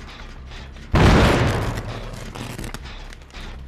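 A generator gives a sudden loud bang.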